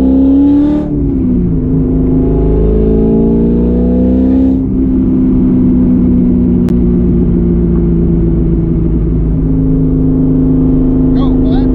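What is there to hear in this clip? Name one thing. A car engine roars loudly, revving up through the gears with brief dips as it shifts.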